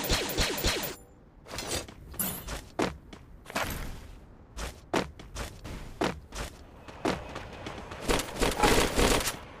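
Quick footsteps patter across a wooden floor.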